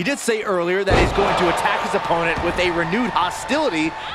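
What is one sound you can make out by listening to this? A body thuds heavily onto a wrestling mat.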